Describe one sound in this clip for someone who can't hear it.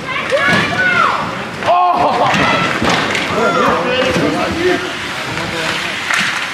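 Ice skates scrape and swish across the ice.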